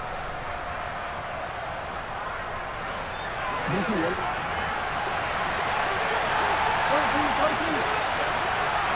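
A stadium crowd roars steadily throughout.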